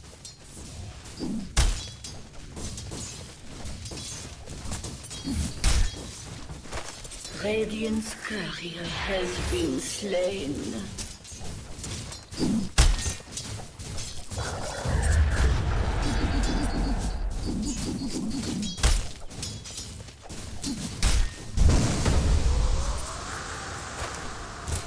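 Game fight effects clash and thump with sharp hits.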